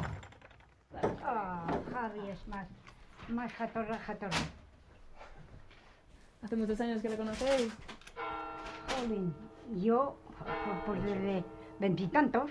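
An elderly woman talks calmly nearby.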